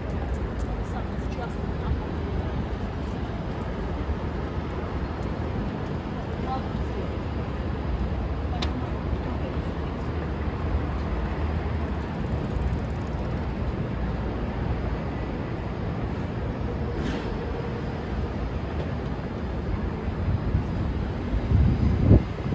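City traffic rumbles steadily outdoors.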